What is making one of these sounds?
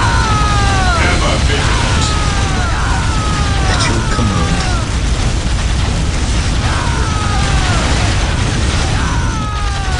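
Flamethrowers roar.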